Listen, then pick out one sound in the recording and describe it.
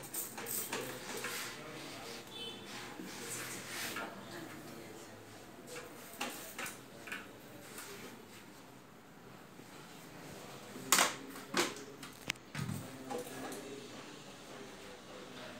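A cloth wipes and rubs across a hard surface.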